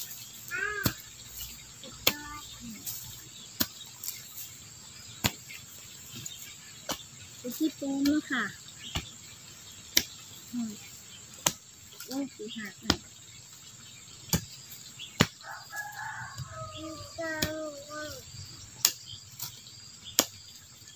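A blade chops sharply into the ground again and again.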